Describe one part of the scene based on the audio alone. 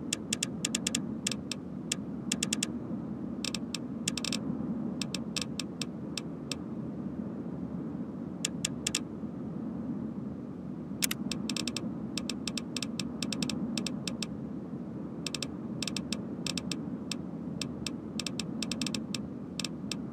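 Menu clicks tick quickly in short bursts.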